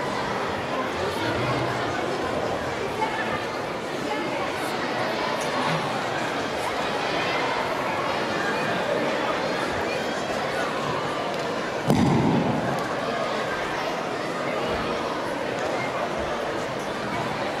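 A large choir of children sings loudly in an echoing hall.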